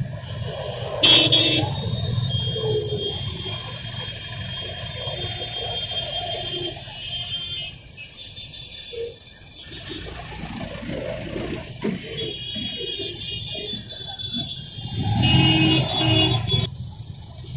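A vehicle horn honks nearby.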